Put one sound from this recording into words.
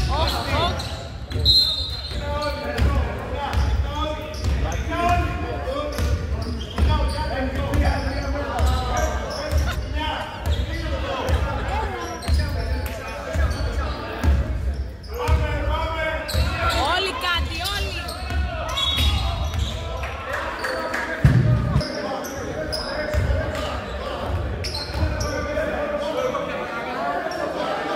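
Men shout and call out across the echoing hall.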